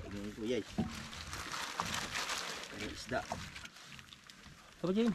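A fishing net rustles as a man handles it.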